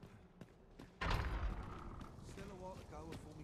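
A heavy wooden gate swings open with a loud thud.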